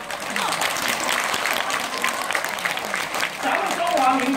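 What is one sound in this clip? An audience claps in a large hall.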